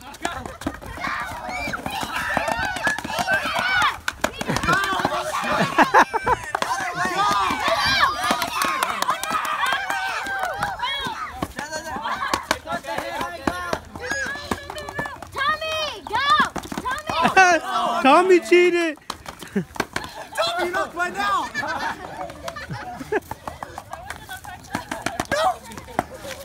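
Children chatter and shout excitedly outdoors.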